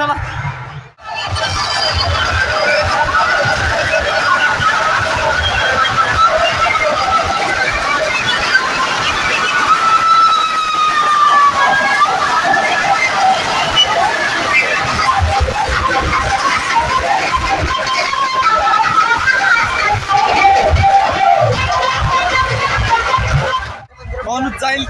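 Loud music with deep bass booms from large loudspeakers.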